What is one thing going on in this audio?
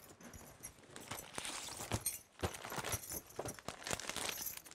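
A cardboard box lid scrapes and taps as it is handled.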